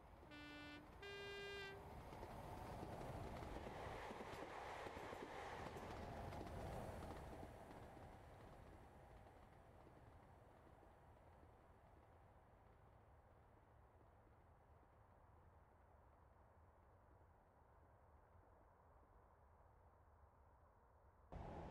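A diesel train roars past close by and fades into the distance.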